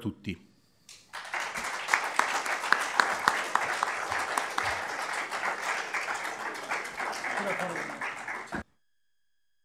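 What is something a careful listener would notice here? An audience applauds steadily, then the applause stops abruptly.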